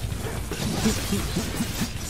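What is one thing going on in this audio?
A sword slashes through the air with a sharp swish.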